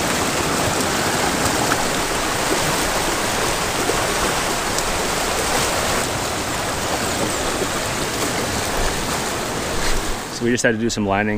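Whitewater rushes and roars close by.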